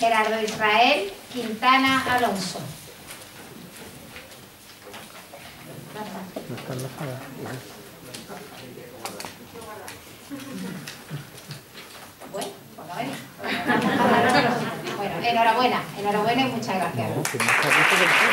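A woman speaks calmly into a microphone in an echoing hall.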